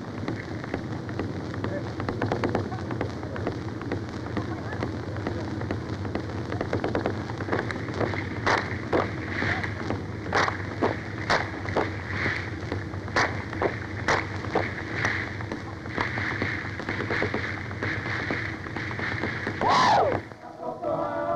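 A group of women sing together.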